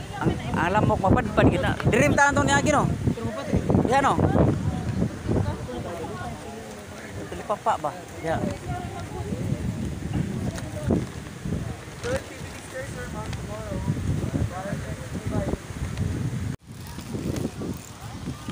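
A crowd of young men and women talk and shout loudly nearby.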